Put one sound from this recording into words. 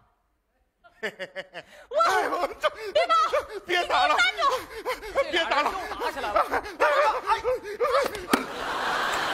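A woman shouts through a microphone.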